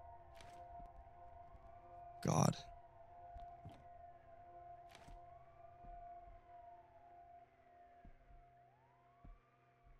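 Footsteps thud softly on a wooden floor.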